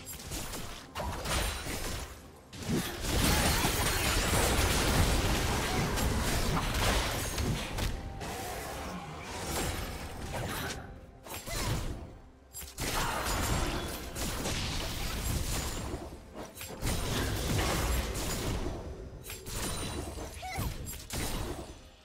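Game spells burst and crackle as figures clash in a fight.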